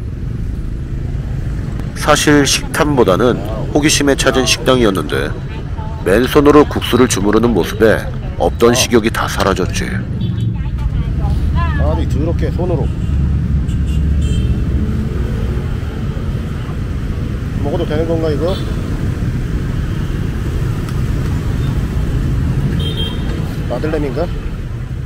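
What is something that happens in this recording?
Traffic hums steadily nearby outdoors.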